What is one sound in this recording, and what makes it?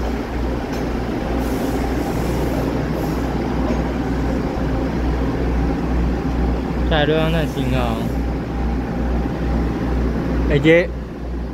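Train wheels clatter along the rails.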